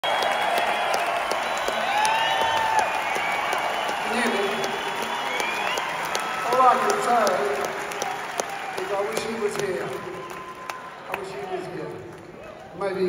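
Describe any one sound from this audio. A large crowd cheers and whistles in a big echoing hall.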